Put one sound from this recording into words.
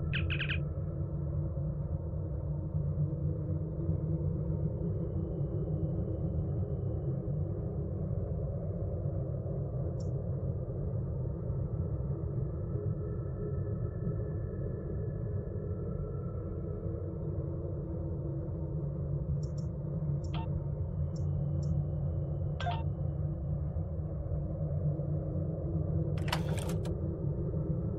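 Short electronic beeps and chimes sound now and then.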